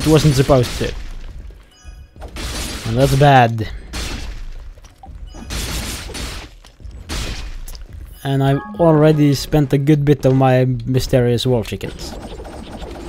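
Swords swish and clash in quick blows.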